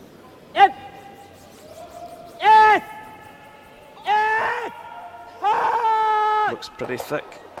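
Young men shout long, drawn-out calls across a large echoing hall.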